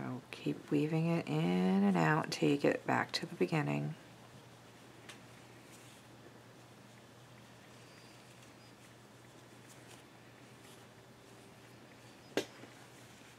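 Soft yarn rustles faintly as hands loop it.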